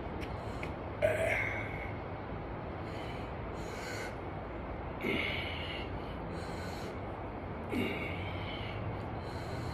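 A young man breathes out hard with effort during each lift.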